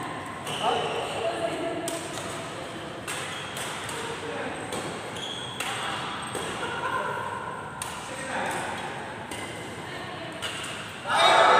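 Sports shoes squeak on a wooden court floor.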